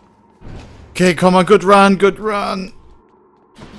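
A man speaks through a headset microphone, close and animated.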